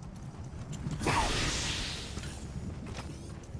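Fire crackles and hisses loudly close by.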